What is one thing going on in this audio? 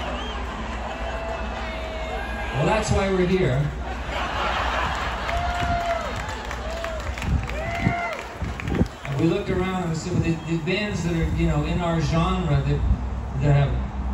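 A man speaks into a microphone over loudspeakers outdoors.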